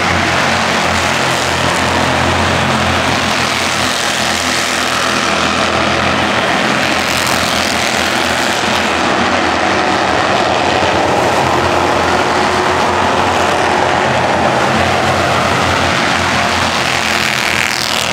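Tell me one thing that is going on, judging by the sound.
Race car engines whoosh past up close.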